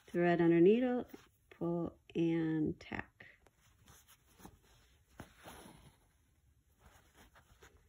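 Fingers brush and rustle softly against cloth.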